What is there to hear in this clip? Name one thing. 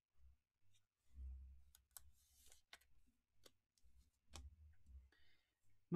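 Plastic card cases click and rustle as they are handled.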